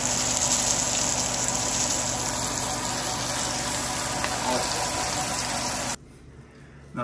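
Fish sizzles loudly in a frying pan.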